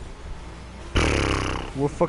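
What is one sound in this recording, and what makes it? A ball is struck with a loud thump.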